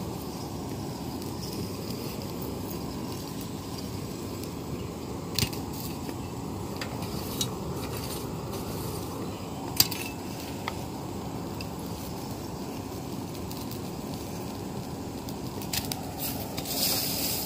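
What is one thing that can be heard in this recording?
A charcoal fire roars steadily.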